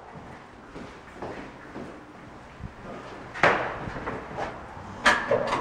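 Footsteps walk along a hard floor.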